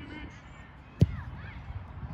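A football is kicked with a sharp thump.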